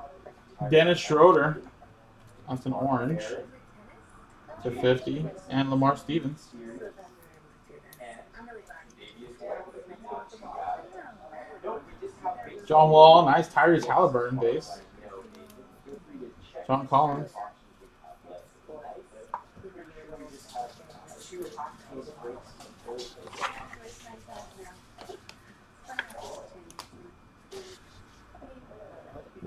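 Trading card packs crinkle and rustle as hands handle them.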